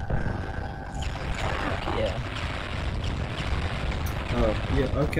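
Fireballs whoosh and burst in a video game battle.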